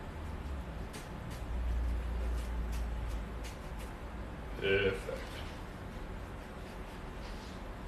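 A paintbrush dabs and brushes against a canvas.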